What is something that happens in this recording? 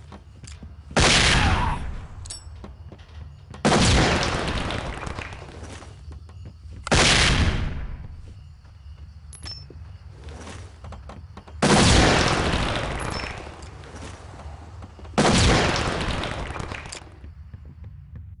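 Smoke grenades burst with a loud hissing rush, again and again, each slowly fading.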